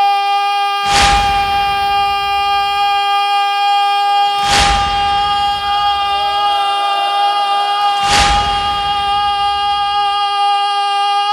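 A crowd strikes their chests in slow, heavy beats that echo.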